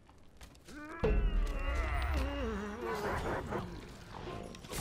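Weapons clash and spells burst in a fight.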